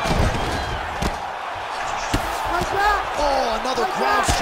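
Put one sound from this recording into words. Heavy punches thud against a body.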